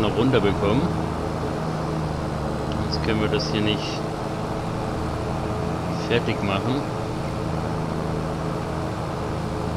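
A mower whirs through grass.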